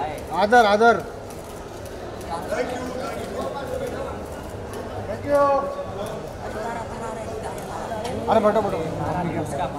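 Men shout loudly nearby, calling out over a crowd.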